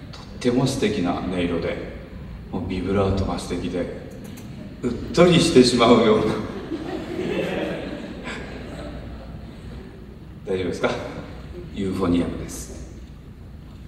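An older man speaks calmly through a microphone in a large echoing hall.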